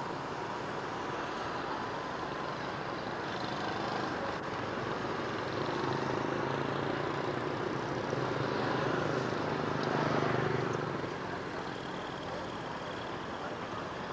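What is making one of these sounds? Outdoor traffic hum fills the air.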